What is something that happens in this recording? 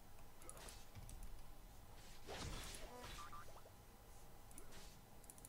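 Video game sound effects clash and chime.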